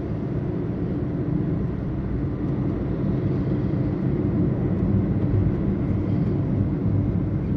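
A car rumbles low and steady as it drives along a road.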